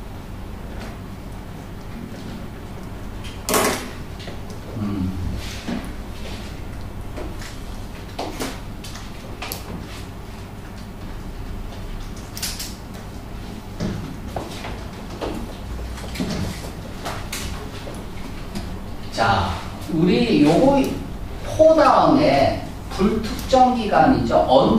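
A young man speaks to a class, at times quietly and then with animation.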